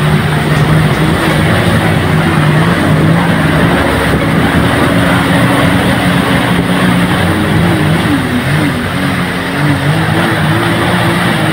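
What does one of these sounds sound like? A motorboat engine drones loudly and shifts in pitch.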